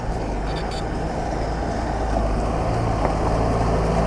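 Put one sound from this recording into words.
A bus engine rumbles nearby as it passes.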